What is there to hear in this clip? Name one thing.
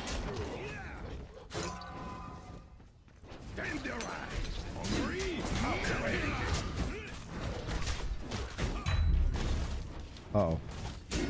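Game spells blast and crackle with bursts of magic.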